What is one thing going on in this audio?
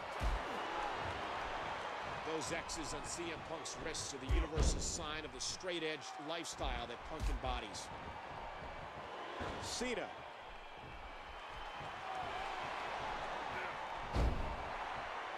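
Heavy bodies slam onto a wrestling mat with loud thuds.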